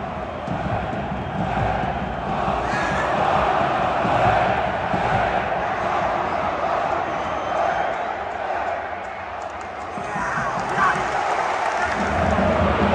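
A large stadium crowd chants and sings loudly, echoing around the stands.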